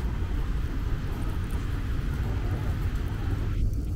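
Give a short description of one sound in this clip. The wheels of a hand trolley rattle over wet pavement.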